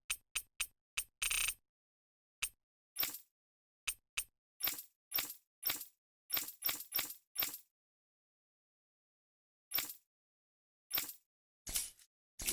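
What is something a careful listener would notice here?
Short electronic menu blips sound in quick bursts, with pauses between.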